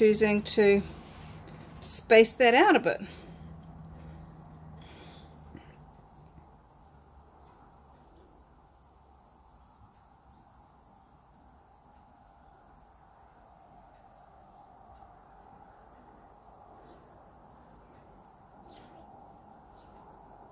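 Thick paint pours slowly from a cup.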